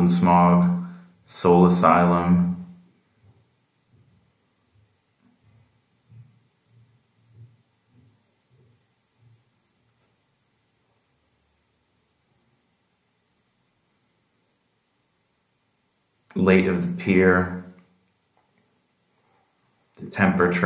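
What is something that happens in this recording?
A man speaks calmly and close by, with pauses.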